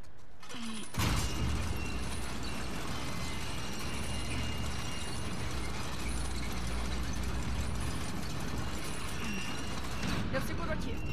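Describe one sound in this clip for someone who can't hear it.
A metal crank wheel turns with a steady grinding rumble.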